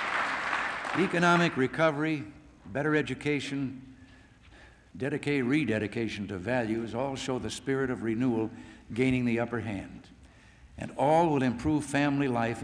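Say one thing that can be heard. An elderly man speaks calmly into microphones in a large echoing hall.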